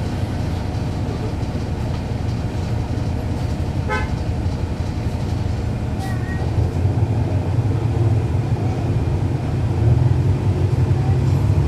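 A bus engine idles with a low, steady rumble close by.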